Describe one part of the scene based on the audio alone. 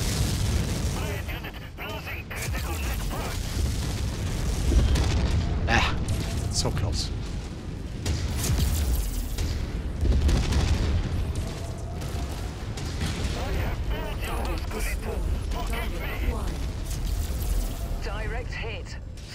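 A man speaks over a radio.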